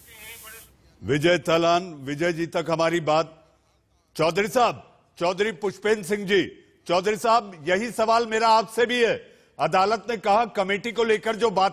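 A man speaks loudly and forcefully through a microphone, heard over a video call.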